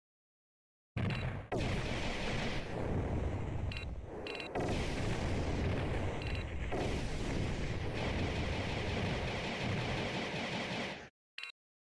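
Explosions and gunfire boom loudly and without a break.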